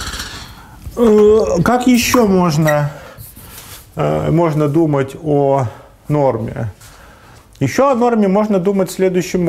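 A man lectures, speaking calmly and clearly.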